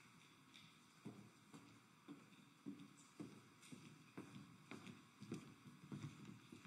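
Footsteps walk steadily across a hard floor in an echoing room.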